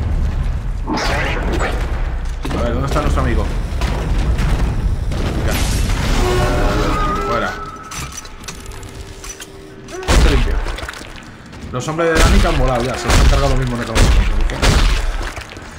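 A heavy gun fires in sharp bursts.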